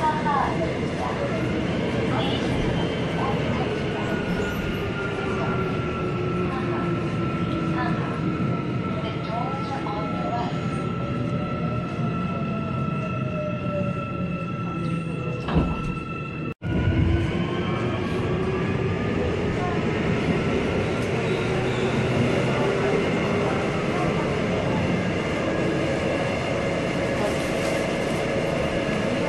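A subway train rumbles along through a tunnel.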